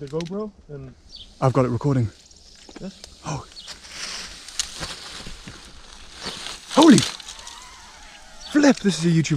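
Leaves and stems rustle underfoot.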